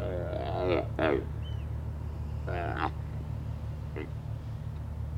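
Sea lions groan and bellow close by.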